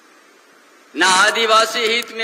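An elderly man speaks firmly into a microphone over loudspeakers.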